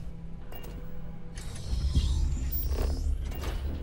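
Heavy sliding doors hiss open.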